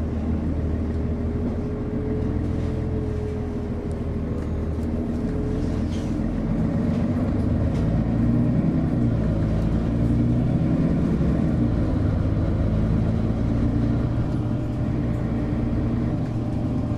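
Small rattles and knocks sound inside the bus.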